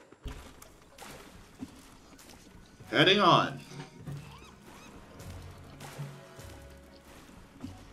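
A small boat paddles through water.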